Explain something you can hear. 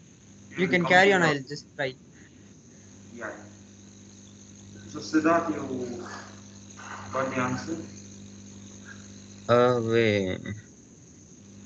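A young man speaks casually in short bursts, close by.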